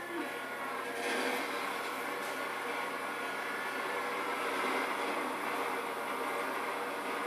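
A train rumbles and roars past, heard through a television speaker.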